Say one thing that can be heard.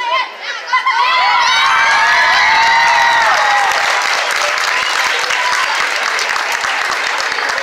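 A crowd of children cheers and screams in a large echoing hall.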